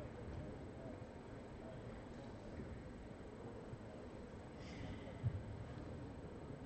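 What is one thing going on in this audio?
A low murmur echoes through a large hall.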